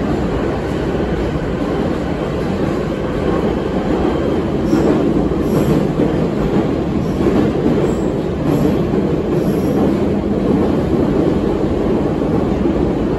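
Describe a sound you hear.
A subway train rumbles and roars steadily along the tracks.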